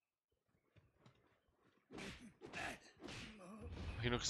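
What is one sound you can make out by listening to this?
Swords clang and swish in a fight.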